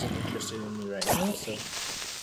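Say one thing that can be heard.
A sword strikes a zombie with a sharp hit.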